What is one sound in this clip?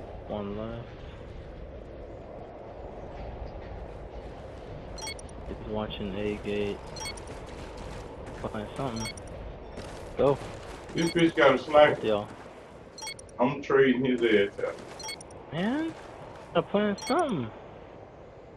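A man talks with animation into a microphone, heard close.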